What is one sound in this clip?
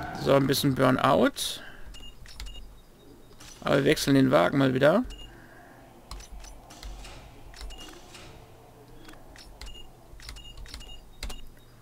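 Short electronic menu beeps and clicks sound.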